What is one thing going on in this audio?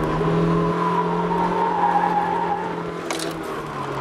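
Tyres squeal on the track in the corners.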